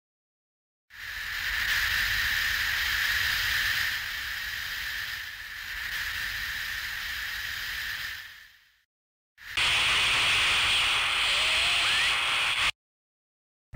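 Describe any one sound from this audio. An arcade game plays a loud, hissing and rumbling sound that stops and starts.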